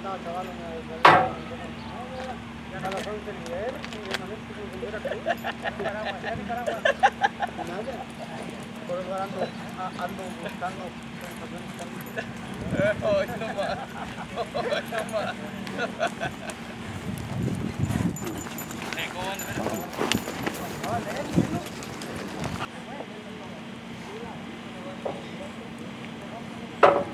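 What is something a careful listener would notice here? Horses' hooves thud softly as the horses walk on a dirt track.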